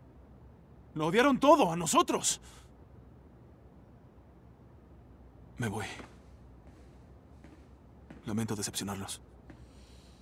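A man speaks nearby with animation.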